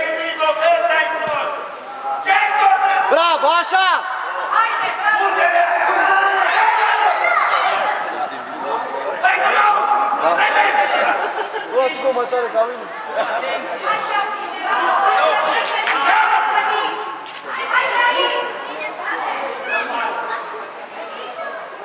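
Young children shout and call out excitedly in a large echoing hall.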